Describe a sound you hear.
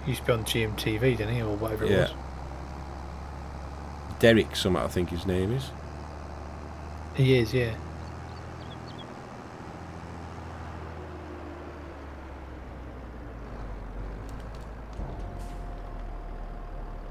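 A tractor engine hums steadily at low revs.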